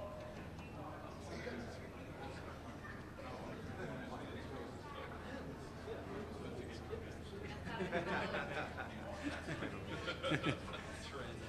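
Several men chatter quietly nearby in a large room.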